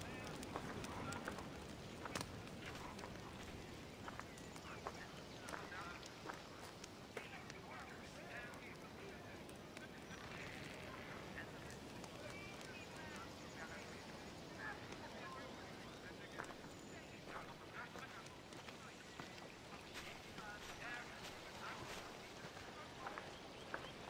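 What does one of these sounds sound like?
Birds chirp outdoors.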